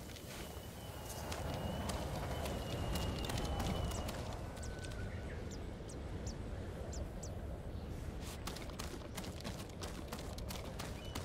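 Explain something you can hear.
Footsteps scuff and tap on rock.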